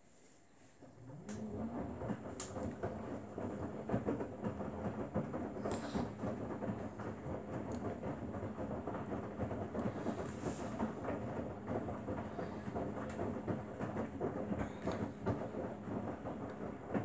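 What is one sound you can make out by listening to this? A front-loading washing machine's motor hums as the drum turns.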